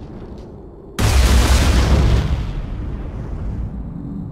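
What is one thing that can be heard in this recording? A loud explosion booms, then roars and slowly fades.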